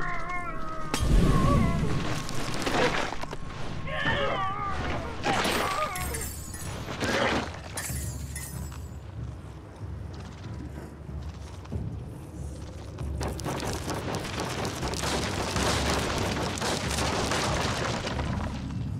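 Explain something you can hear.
Weapons fire in rapid bursts with sharp cracks.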